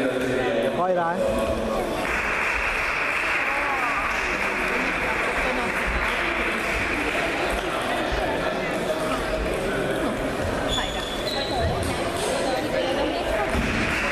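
A table tennis ball clicks against bats and the table.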